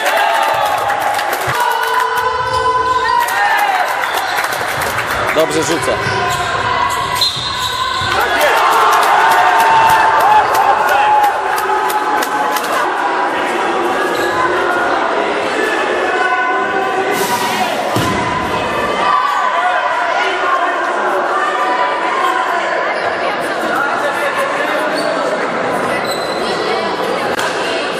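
A crowd of young men and boys shout and call out in a large echoing hall.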